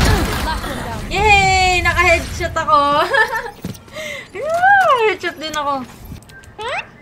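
A young woman laughs excitedly.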